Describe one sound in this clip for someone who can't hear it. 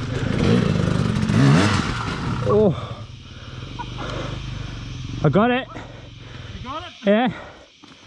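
A motorcycle engine idles and revs in short bursts close by.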